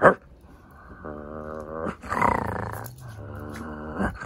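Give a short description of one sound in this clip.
A dog whines softly close by.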